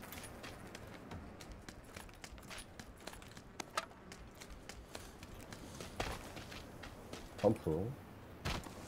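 Footsteps thud as a person walks.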